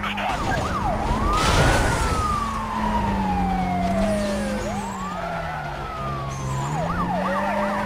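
A police siren wails close by, rising and falling.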